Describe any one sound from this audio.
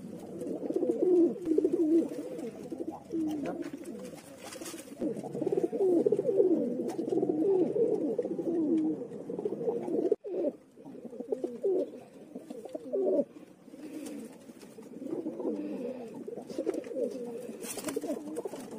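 Pigeons coo.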